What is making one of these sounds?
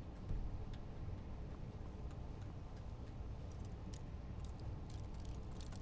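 Electricity crackles softly from a hand.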